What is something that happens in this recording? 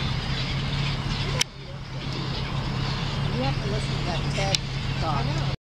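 Large birds call and croak in a noisy colony.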